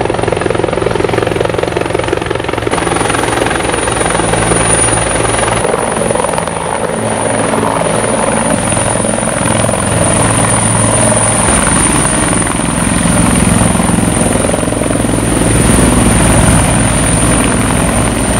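A helicopter's rotor thumps loudly as it descends and lands.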